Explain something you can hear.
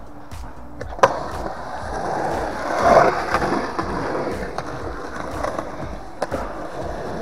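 A skateboard clacks sharply on concrete.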